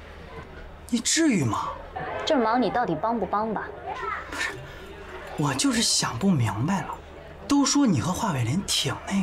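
A young woman asks questions in an irritated voice, close by.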